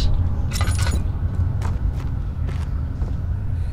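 Footsteps knock on wooden floorboards.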